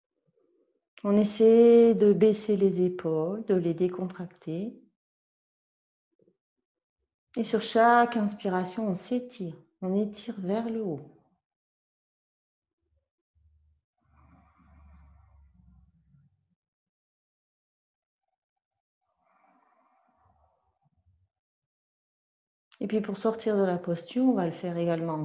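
An older woman speaks calmly and slowly into a nearby microphone, with long pauses.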